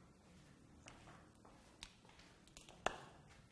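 Footsteps approach on a hard floor.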